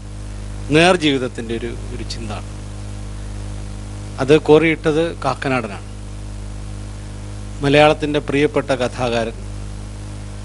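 A man sings through a microphone in short phrases.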